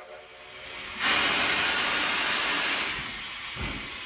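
A steam locomotive hisses loudly, releasing steam.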